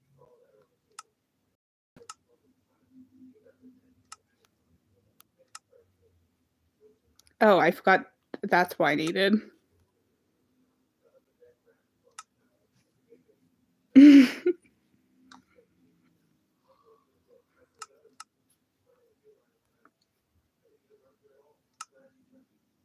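Soft game menu clicks sound now and then.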